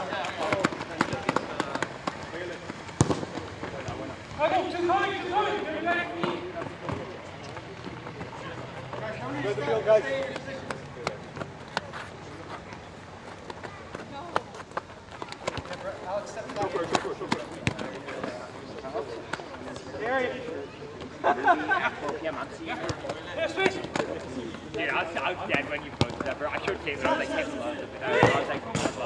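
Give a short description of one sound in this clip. Sneakers patter and scuff on a hard court.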